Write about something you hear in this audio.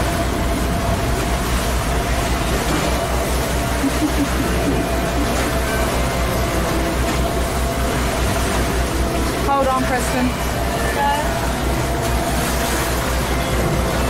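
A boat's engine hums steadily.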